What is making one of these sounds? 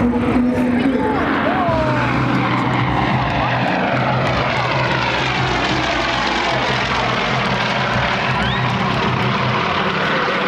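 Several propeller planes drone overhead, growing louder as they pass close.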